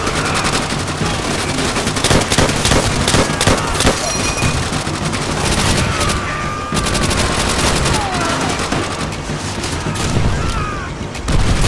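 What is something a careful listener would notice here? Rapid gunfire crackles and bangs in a dense battle.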